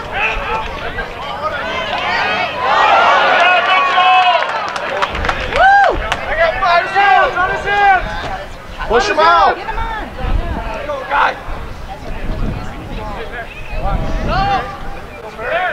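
Teenage boys shout to each other outdoors across an open field.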